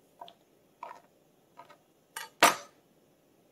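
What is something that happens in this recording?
A knife taps and chops on a plastic cutting board.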